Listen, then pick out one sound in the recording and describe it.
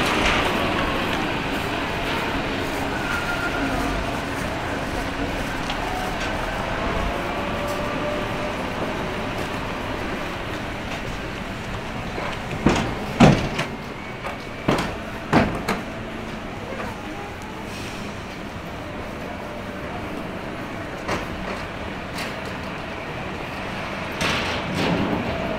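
Traffic and city bustle hum steadily outdoors.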